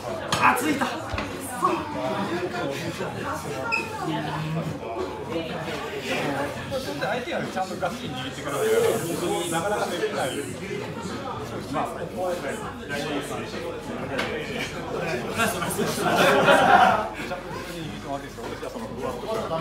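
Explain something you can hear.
A young man laughs loudly nearby.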